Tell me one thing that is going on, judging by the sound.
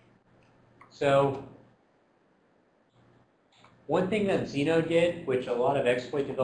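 A man lectures through a microphone.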